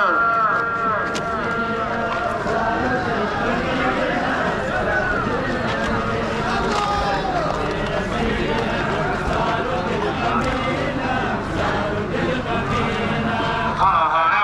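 A man's voice chants through loudspeakers, echoing along the street.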